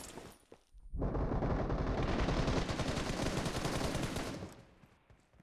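A rifle fires in a rapid automatic burst.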